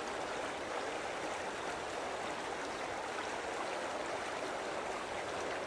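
Water laps and ripples steadily.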